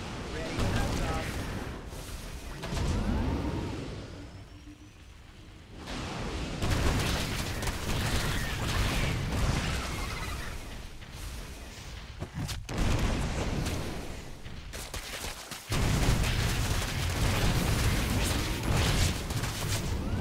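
Game weapons fire and explosions rumble through a battle.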